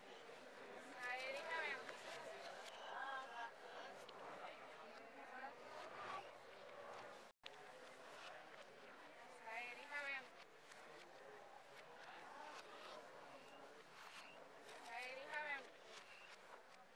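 A woman reads out loudly.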